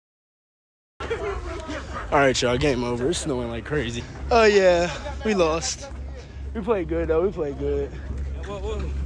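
A young man talks animatedly close by, outdoors.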